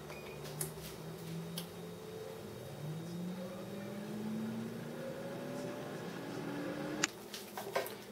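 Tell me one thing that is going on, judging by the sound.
An appliance fan whirs steadily, rising in pitch.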